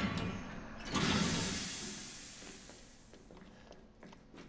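Steam hisses loudly and fades.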